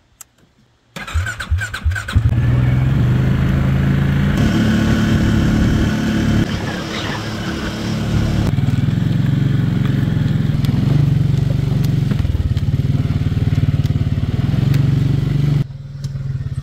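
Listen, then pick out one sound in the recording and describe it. An ATV engine starts and runs while driving along a dirt trail.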